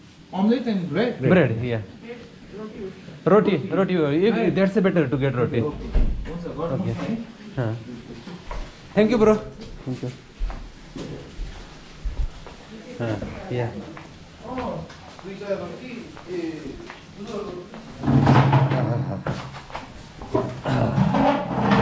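Clothing rustles and rubs close by.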